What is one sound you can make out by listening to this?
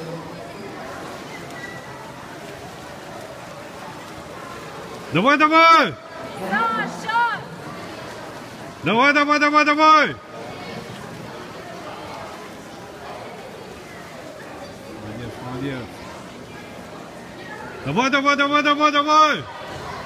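Swimmers splash through the water in an echoing pool hall.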